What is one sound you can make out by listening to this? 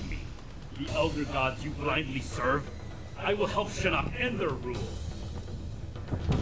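A man answers with a menacing voice.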